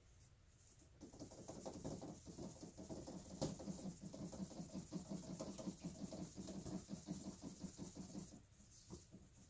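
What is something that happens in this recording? A brush swirls and scrapes in a cup of liquid.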